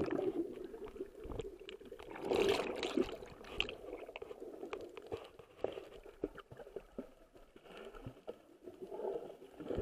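Water splashes and churns, heard muffled underwater.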